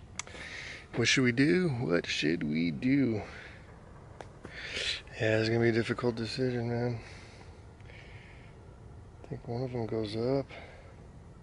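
A man talks casually, close up.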